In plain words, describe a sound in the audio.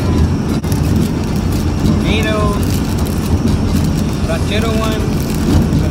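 A paper wrapper crinkles.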